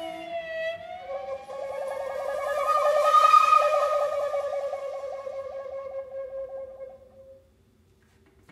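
A clarinet plays a fluttering, trilling note that swells and fades.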